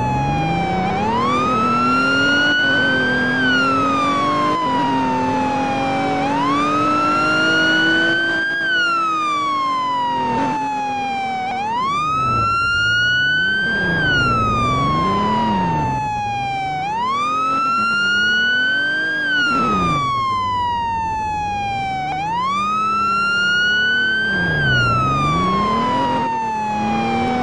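A car engine hums as the car drives.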